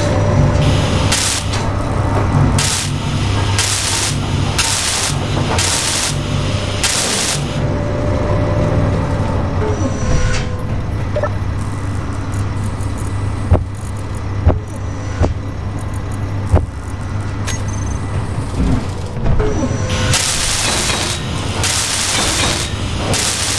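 A welding tool crackles and hisses in short, repeated bursts.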